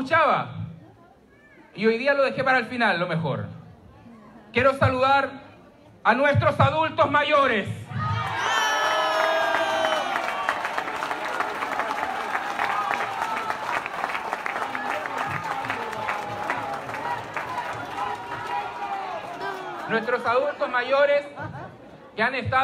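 A man speaks with animation through a microphone and loudspeakers in a large room.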